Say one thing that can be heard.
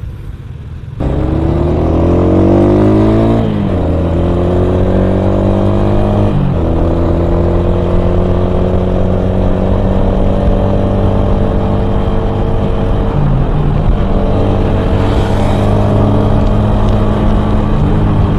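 A motorcycle engine revs up and accelerates, rising in pitch between gear changes.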